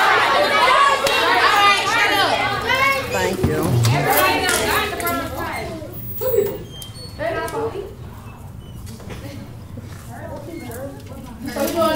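A woman speaks loudly and with animation in a large echoing room.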